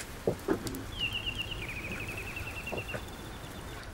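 A doorbell buzzes.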